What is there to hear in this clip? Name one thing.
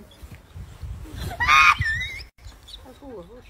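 A baby cries loudly nearby.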